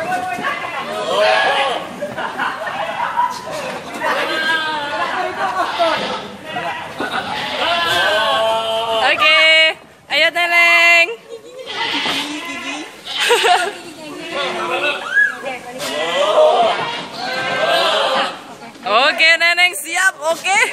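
Young men and women chatter nearby.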